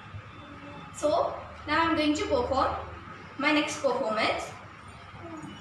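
A young girl speaks calmly and clearly, close by.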